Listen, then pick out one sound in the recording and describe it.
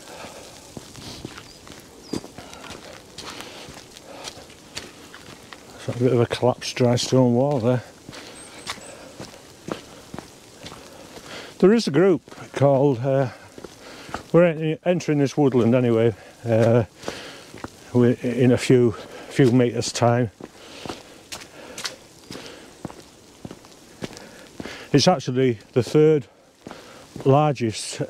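Footsteps crunch on a wet gravel path.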